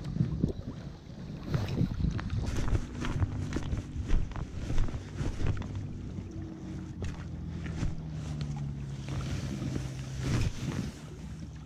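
A jacket sleeve rustles close by.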